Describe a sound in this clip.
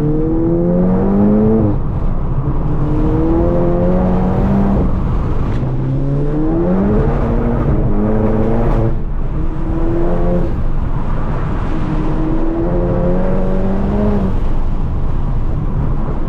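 A car engine revs hard and climbs in pitch, dropping briefly at each gear change.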